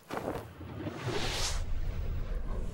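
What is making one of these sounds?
A magical energy effect whooshes.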